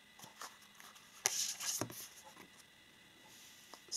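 Cards slide and tap onto a table.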